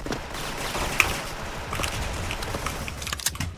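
A rifle shot cracks sharply.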